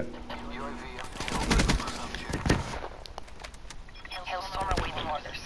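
Rapid gunshots crack in short bursts.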